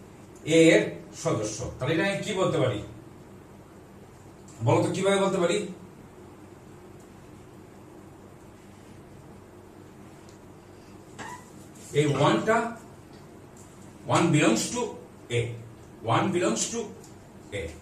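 A man speaks calmly close by, in short phrases with pauses.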